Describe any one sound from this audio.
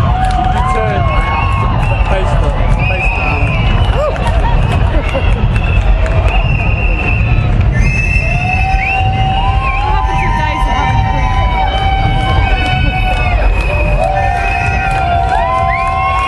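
A lively crowd chatters and cheers outdoors.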